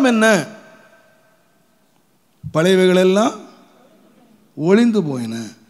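An elderly man speaks with emphasis into a microphone, in short bursts with pauses, his voice ringing in a reverberant hall.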